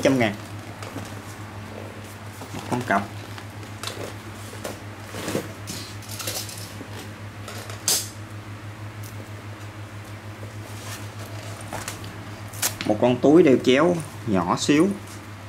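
A fabric bag rustles and shuffles as it is handled.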